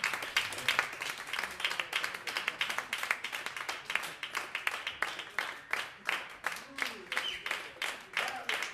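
An audience claps loudly and steadily in a room.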